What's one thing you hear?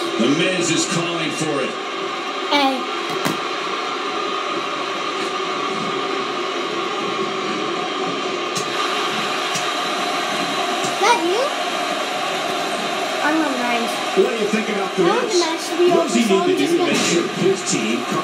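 A crowd cheers and roars steadily through a television speaker.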